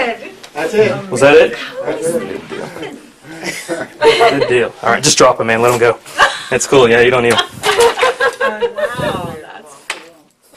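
Middle-aged women laugh loudly close by.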